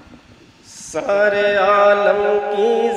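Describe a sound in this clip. An elderly man sings a melodic verse into a microphone over a loudspeaker.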